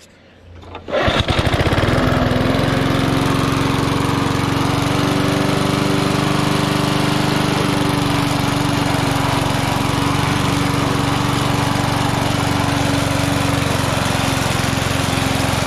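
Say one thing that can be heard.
A lawn mower engine runs with a steady loud drone.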